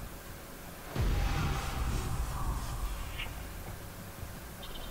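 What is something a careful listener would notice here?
A game effect whooshes with a sudden burst and slowly fades.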